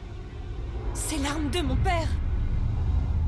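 A young woman speaks with alarm, close by.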